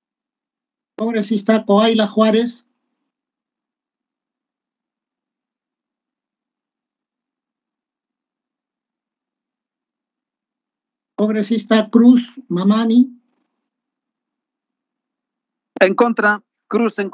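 A middle-aged man speaks calmly through an online call, in short bursts with long pauses.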